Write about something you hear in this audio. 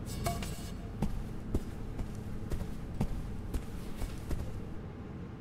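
Footsteps echo across a large hall.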